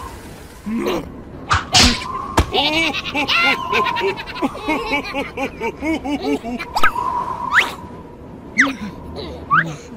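Two cartoon creatures chatter and babble in high, squeaky voices.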